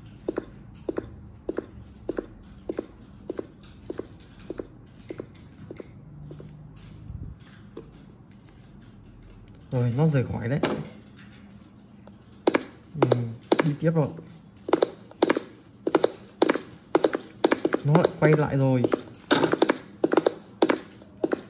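Fingers tap quickly on a touchscreen.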